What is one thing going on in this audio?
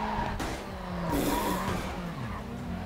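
A car crashes hard into a barrier.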